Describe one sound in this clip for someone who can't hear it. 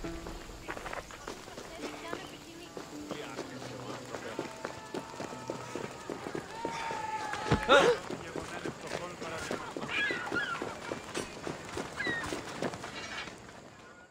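Footsteps crunch steadily on dirt and stone.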